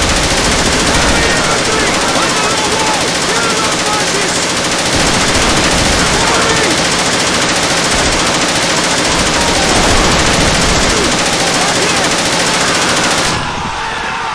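A heavy machine gun fires long, rapid bursts.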